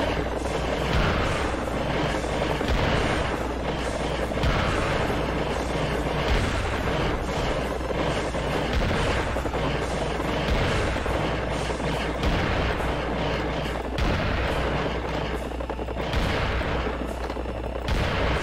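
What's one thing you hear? A shotgun fires in loud, repeated blasts.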